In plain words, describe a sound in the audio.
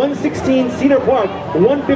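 A crowd cheers outdoors.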